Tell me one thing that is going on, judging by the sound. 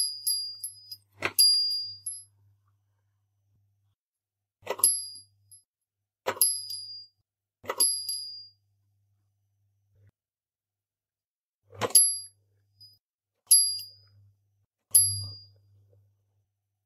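A small metal bell rings in short, bright strikes.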